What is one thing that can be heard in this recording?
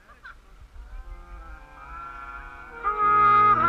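Brass horns play sustained notes together, growing louder.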